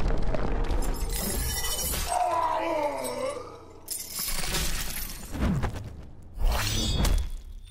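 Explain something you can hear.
Heavy blows and thuds land in a fight.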